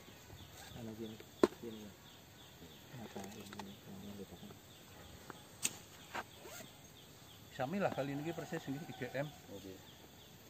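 Leafy branches rustle as a man handles them.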